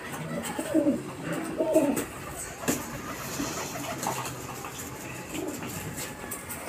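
Pigeons coo close by.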